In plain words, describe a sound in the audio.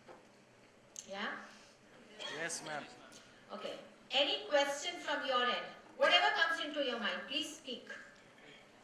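A woman speaks calmly into a microphone over a loudspeaker.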